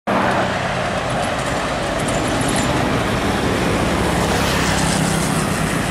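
Cars pass by on a road outdoors.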